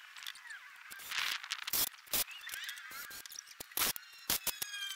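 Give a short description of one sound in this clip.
A cordless drill whirs in short bursts as it drives screws into wood.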